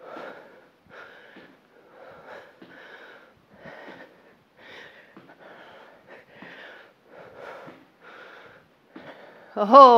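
Feet land with thuds on the floor as a woman jumps.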